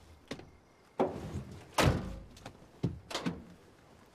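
Bodies thump and scramble against a car's seats and door.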